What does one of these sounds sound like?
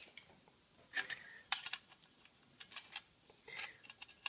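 A metal tape measure rattles as it is pulled out.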